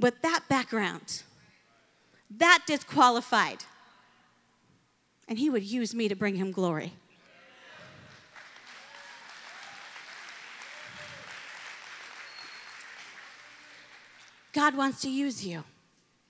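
A woman preaches with passion through a microphone, her voice echoing in a large hall.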